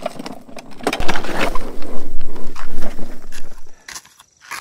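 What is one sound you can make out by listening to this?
Stones tumble and clatter out of a tipped cart.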